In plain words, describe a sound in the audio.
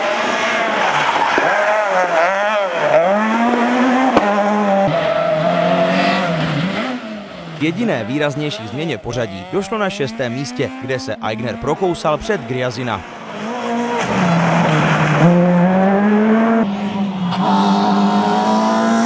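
A rally car engine revs hard and screams through its gears.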